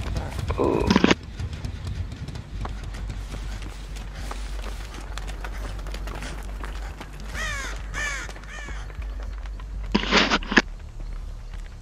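Footsteps run over leaves and undergrowth.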